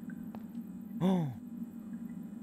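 A young man makes a short sound into a close microphone.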